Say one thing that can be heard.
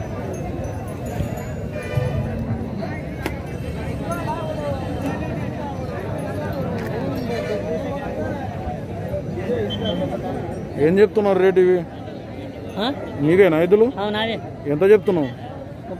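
A crowd of men chatters in the background outdoors.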